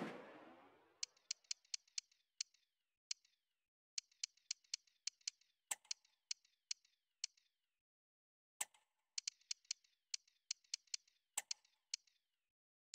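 Short electronic ticks click rapidly in bursts.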